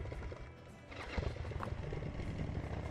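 An outboard motor starts up.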